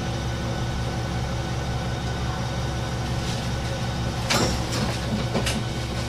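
A train engine idles with a low, steady hum.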